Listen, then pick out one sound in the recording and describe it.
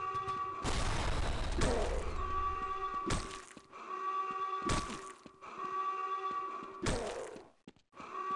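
An axe strikes flesh with heavy, wet thuds.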